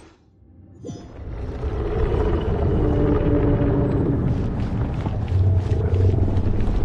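Wind rushes loudly past.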